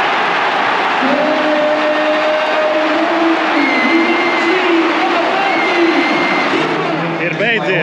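A big crowd sings together in long held notes.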